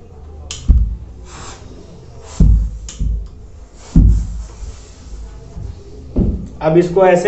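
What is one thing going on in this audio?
An iron thumps down onto a padded board.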